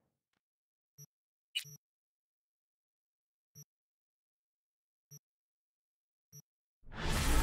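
Short electronic beeps sound now and then.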